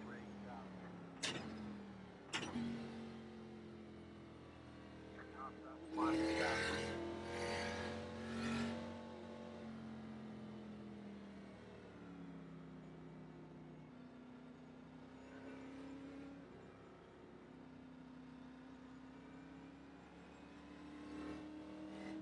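A race car engine hums steadily, its pitch rising and falling with speed.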